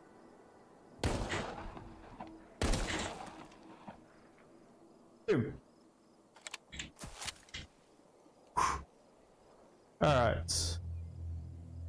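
A revolver fires loud shots that echo.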